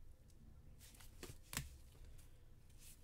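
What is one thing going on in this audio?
A plastic card holder taps down on a hard surface.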